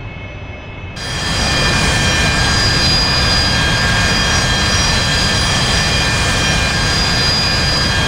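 A jet engine whines and roars steadily.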